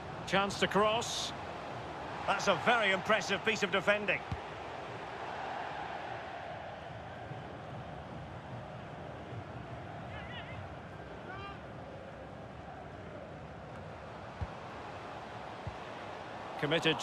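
A large stadium crowd murmurs and cheers steadily in the distance.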